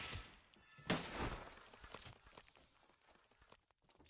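A blade swishes and strikes with sharp hits.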